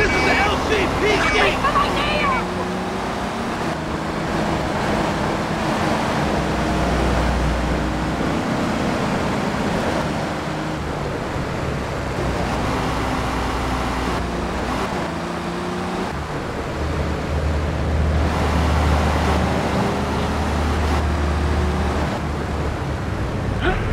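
A car engine hums and revs as a car drives along.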